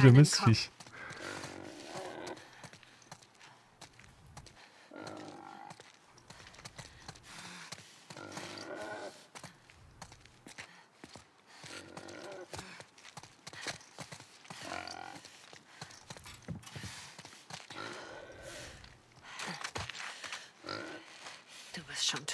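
Footsteps tread slowly across a hard floor.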